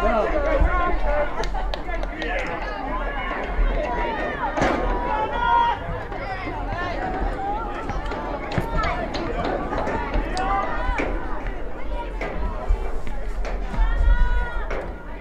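Young players shout and call to each other across an open outdoor field.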